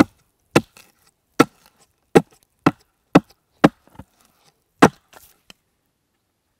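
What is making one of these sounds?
A hatchet chops sharply into wood, blow after blow.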